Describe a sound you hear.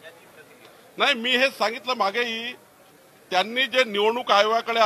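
A middle-aged man speaks forcefully into microphones, close by.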